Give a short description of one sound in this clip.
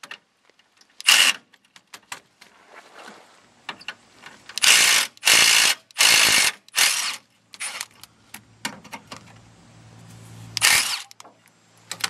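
An impact wrench rattles in short, loud bursts.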